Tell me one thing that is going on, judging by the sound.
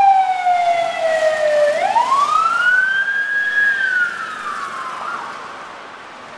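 An ambulance siren wails loudly nearby, then fades as it drives away.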